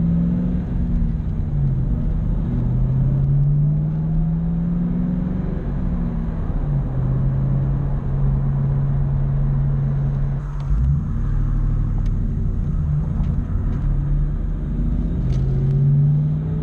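A car engine hums and shifts pitch as the car drives along.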